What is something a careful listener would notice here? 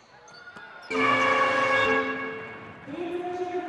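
A buzzer sounds loudly in a large echoing hall.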